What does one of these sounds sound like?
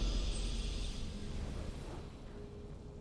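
A triumphant game fanfare rings out and fades.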